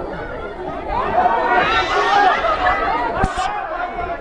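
A crowd roars and cheers loudly.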